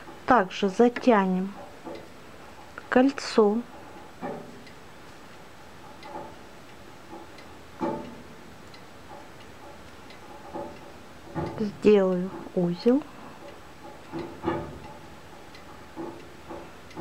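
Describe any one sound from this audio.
A crochet hook softly scrapes and pulls through yarn.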